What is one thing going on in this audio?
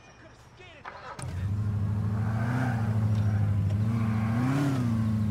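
A sports car engine starts and rumbles loudly.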